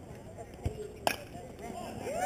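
A metal bat cracks against a ball.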